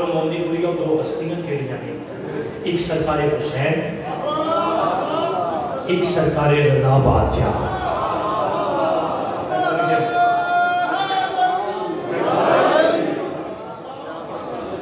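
A young man speaks passionately into a microphone over loudspeakers in an echoing hall.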